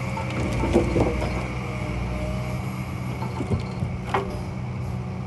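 Logs knock against each other.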